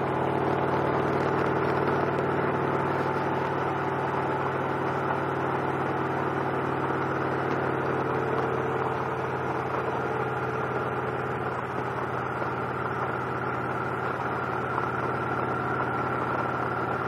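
Wind rushes past the rider.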